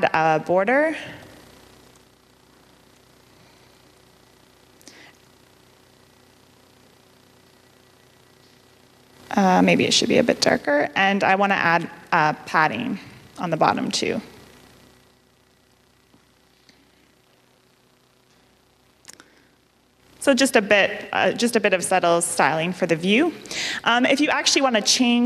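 A young woman speaks calmly into a microphone, with pauses.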